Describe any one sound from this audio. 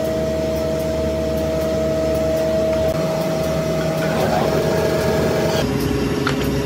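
A woodworking machine hums steadily.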